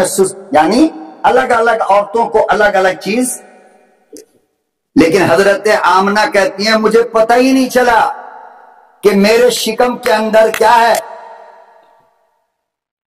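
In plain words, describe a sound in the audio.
A man speaks forcefully into a microphone, heard through a loudspeaker.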